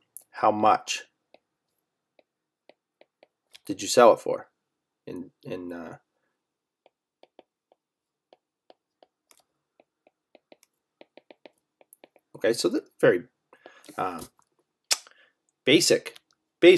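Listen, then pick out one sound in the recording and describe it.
A stylus taps softly on a tablet's glass.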